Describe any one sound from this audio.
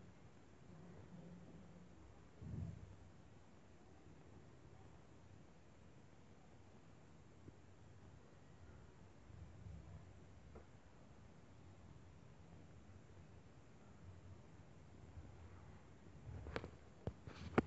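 Hands softly roll dough.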